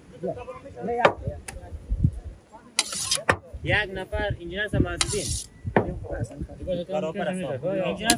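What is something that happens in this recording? A metal ladle scrapes rice in a large pot.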